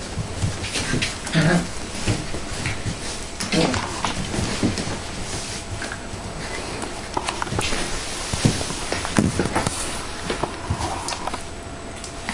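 Small paws scratch and patter on a hard floor.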